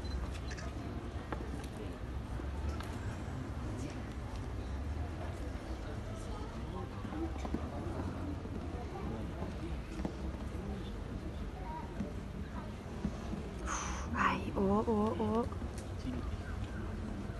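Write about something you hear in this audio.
A large crowd murmurs in an open-air stadium.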